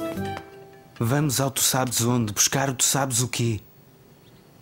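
A man speaks softly and warmly.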